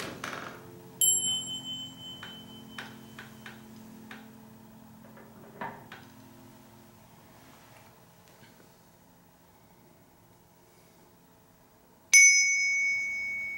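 A small hand bell rings brightly and its tone slowly fades.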